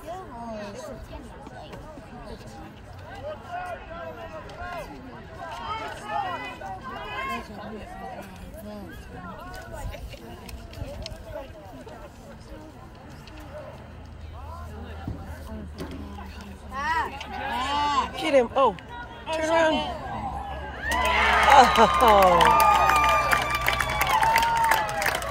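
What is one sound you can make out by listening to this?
Young players shout and call out across an open field, growing louder toward the end.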